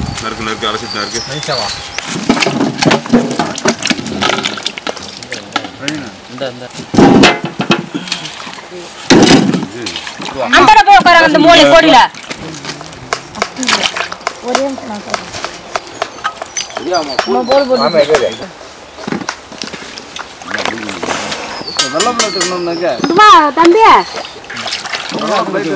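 Water splashes as vegetables are washed by hand.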